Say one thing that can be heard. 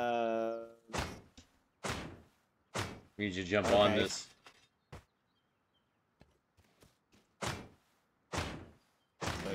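A metal barrel clangs as a tool strikes it several times.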